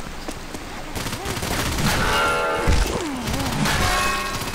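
A zombie snarls and growls up close.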